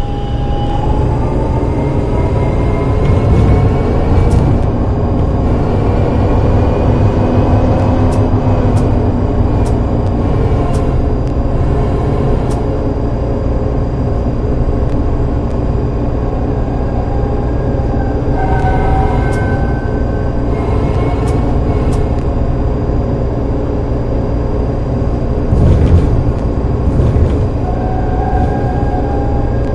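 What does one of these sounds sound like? A tram motor hums and whines steadily as the tram rolls along.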